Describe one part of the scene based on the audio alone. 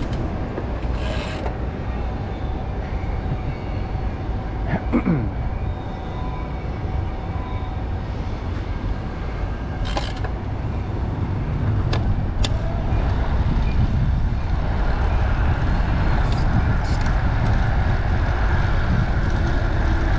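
Wind rushes steadily past, outdoors, growing stronger toward the end.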